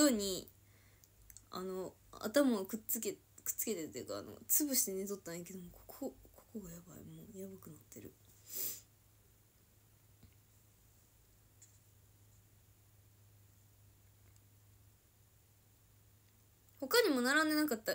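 A young woman talks casually, close to the microphone.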